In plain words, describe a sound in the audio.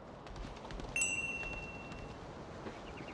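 A bright game menu chime rings out as a menu opens.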